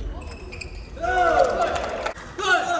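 A young man shouts out on the court, echoing in a large hall.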